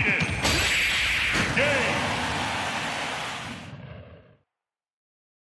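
A heavy blow lands with a loud booming crash that rings out and fades.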